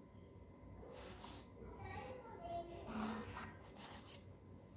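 A pen scratches along a ruler on paper.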